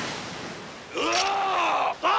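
A young man gives a loud fighting shout.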